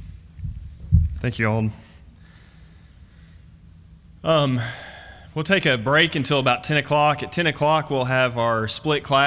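A man speaks calmly into a microphone, heard through loudspeakers.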